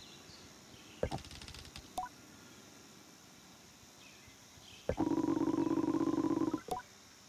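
A rapid string of soft electronic blips chatters in short bursts.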